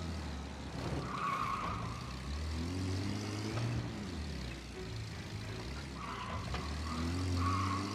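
Car tyres squeal briefly on a smooth floor.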